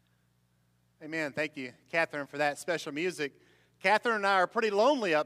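A man speaks clearly and calmly through a microphone in an echoing room.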